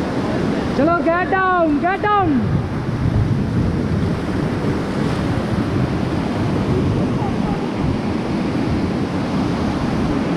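Rushing river rapids roar loudly and steadily.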